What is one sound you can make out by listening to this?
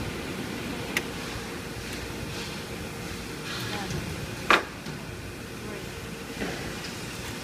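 Tools clink and knock on metal.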